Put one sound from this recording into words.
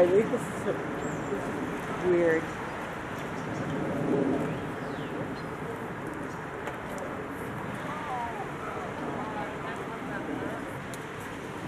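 A small crowd of adults chats outdoors.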